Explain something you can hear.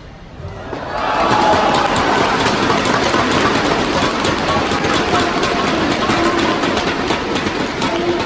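A crowd applauds and cheers loudly in a large echoing hall.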